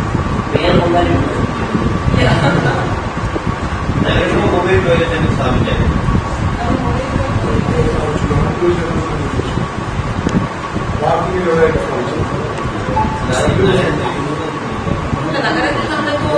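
A young woman speaks calmly into microphones, heard close and slightly echoing.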